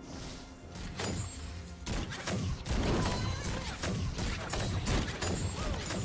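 Video game spells burst and whoosh during a fight.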